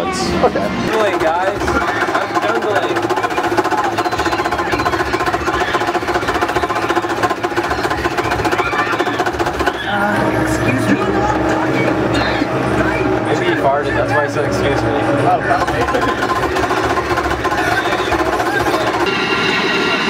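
Arcade game music and sound effects blare loudly from loudspeakers.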